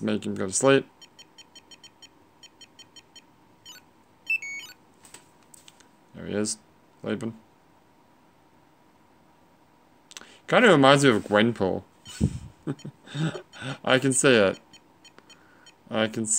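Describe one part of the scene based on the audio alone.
A small electronic toy beeps in short, high tones.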